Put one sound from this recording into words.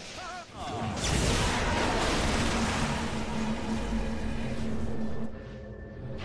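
Magic blasts and explosions crackle and roar loudly.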